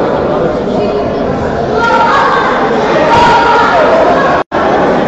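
A crowd of children and adults chatters in a large echoing hall.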